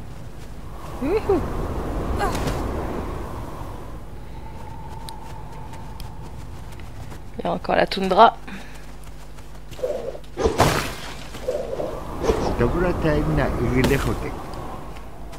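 Wind blows in strong gusts through a snowstorm.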